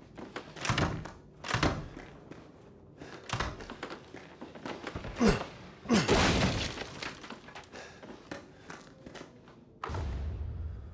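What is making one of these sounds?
Footsteps thud and creak on wooden floorboards.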